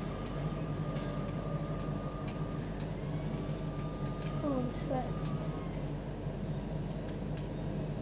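Sharp electronic bursts and clicks sound through a small loudspeaker.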